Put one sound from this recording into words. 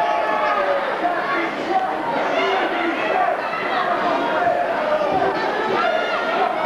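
A crowd of spectators shouts and chatters loudly in a large hall.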